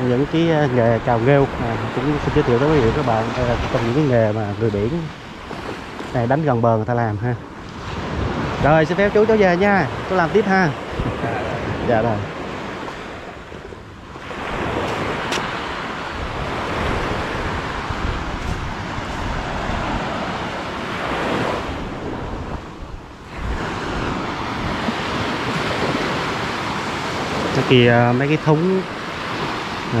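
Gentle waves wash onto the shore.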